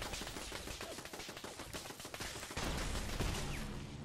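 Gunshots fire in quick succession.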